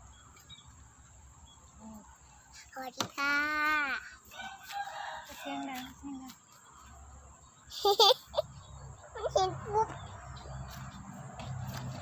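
A metal hoe chops into dry soil with dull thuds.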